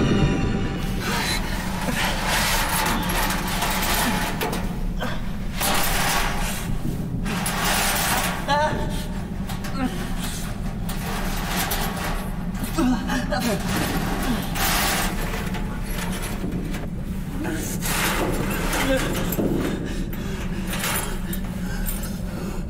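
A man breathes heavily and pants close by.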